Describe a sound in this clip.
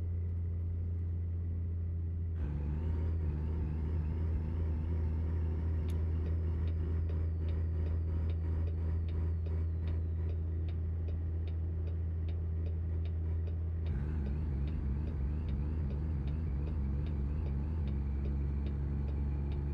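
A truck's diesel engine drones steadily, with gear changes shifting its pitch.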